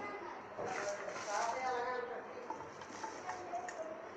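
Peeled garlic cloves drop into a steel pot.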